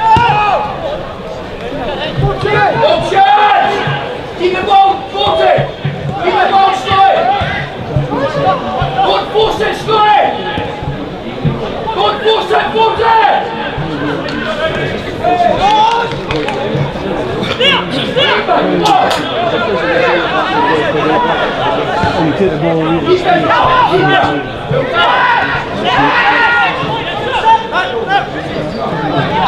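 Men shout and call to each other across an open outdoor pitch.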